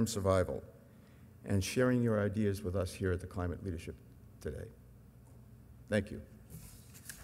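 An older man speaks into a microphone.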